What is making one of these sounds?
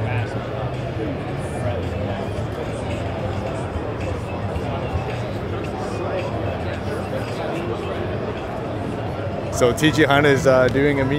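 A crowd murmurs throughout in a large echoing hall.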